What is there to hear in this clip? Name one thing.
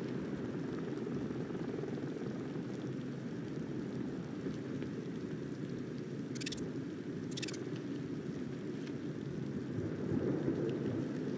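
Rain and wind roar steadily outdoors.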